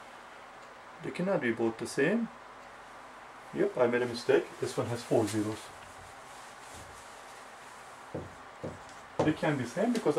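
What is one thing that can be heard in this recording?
A man speaks calmly nearby, explaining.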